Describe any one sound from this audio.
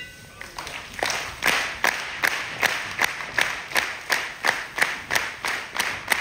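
An audience claps in unison to a steady beat.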